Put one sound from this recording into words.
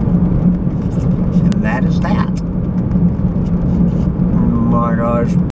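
Tyres rumble on a paved road.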